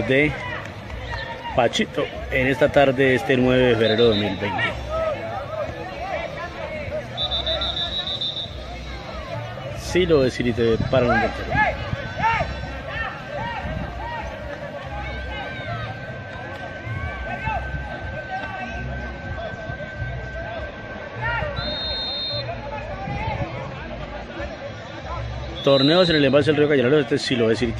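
A crowd of spectators chatters and shouts outdoors, heard from a distance.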